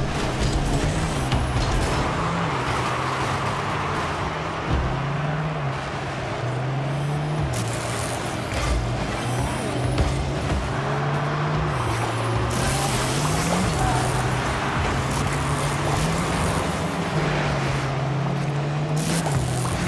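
A rumbling car engine hums steadily and rises briefly in pitch now and then.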